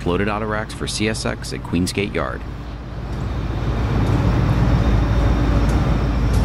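A diesel locomotive engine rumbles and grows louder as it approaches.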